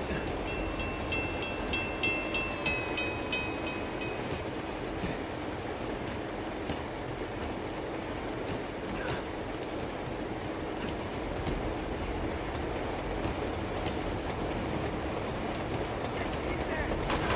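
A freight train rumbles along its tracks.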